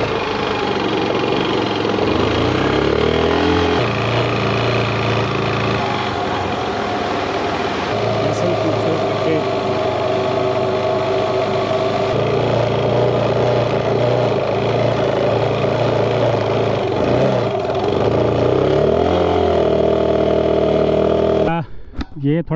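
A motorcycle engine drones steadily and changes pitch while riding over sand.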